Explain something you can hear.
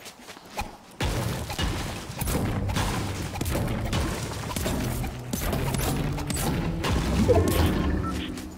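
A pickaxe strikes rock again and again.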